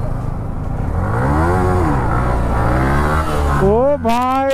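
A motorcycle engine revs up and down loudly nearby.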